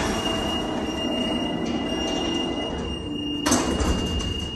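A heavy lift door slides shut with a rumble.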